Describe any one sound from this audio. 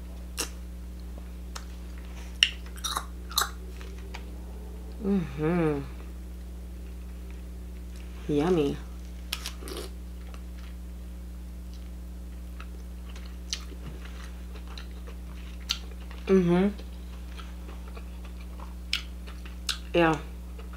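Crab shells crack and snap in close detail.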